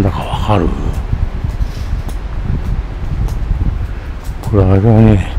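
Wind gusts outdoors and rustles tree leaves.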